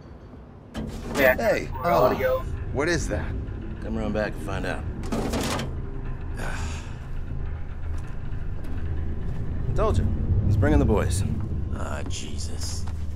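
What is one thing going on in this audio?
A second man answers casually.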